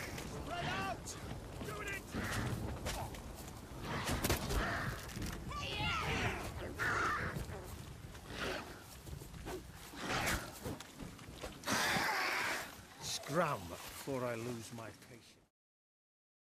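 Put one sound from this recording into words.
Men shout and grunt during a fight.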